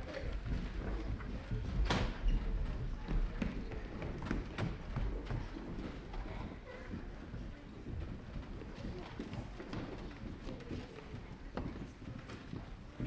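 Children shuffle and bump about as they walk out.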